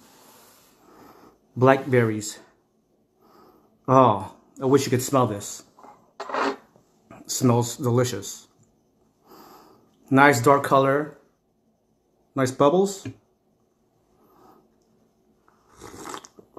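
A man sips a drink.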